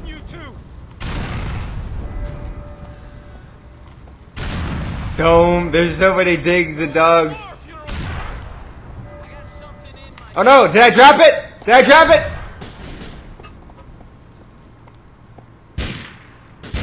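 Gunshots crack sharply.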